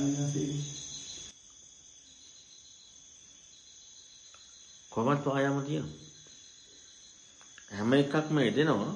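A man chants slowly in a steady, drawn-out voice.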